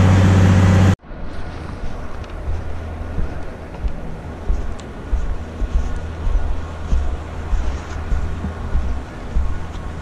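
A snowboard scrapes and rattles over hard, icy snow.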